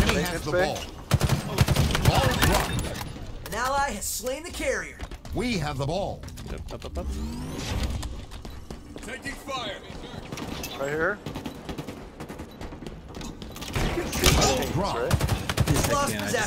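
Rapid automatic gunfire rattles in short bursts.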